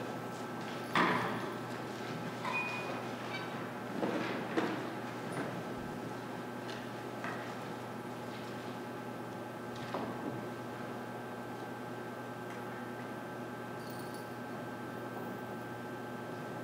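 A string orchestra plays softly in a large echoing hall.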